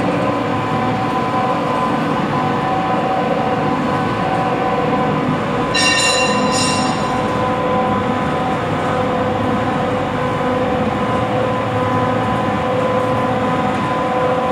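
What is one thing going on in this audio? An electric motor drives the gearbox of a soap mixing machine with a steady hum.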